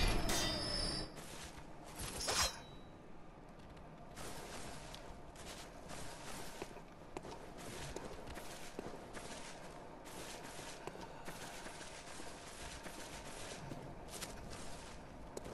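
Footsteps crunch through dry grass and gravel.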